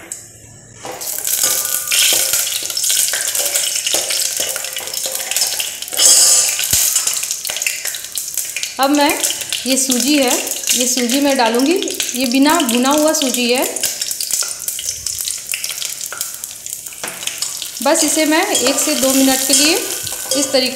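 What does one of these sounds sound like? Hot oil sizzles and crackles steadily in a metal pot.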